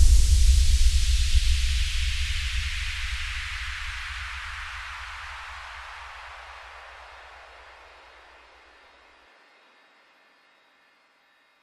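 A whooshing sweep falls in pitch and fades away.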